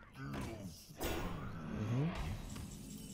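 A game effect whooshes and rumbles as a card lands.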